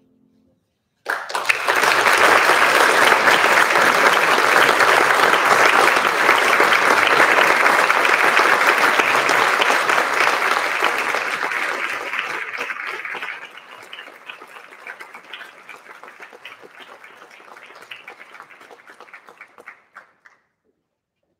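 An audience applauds loudly in a large hall, then the clapping thins out and fades.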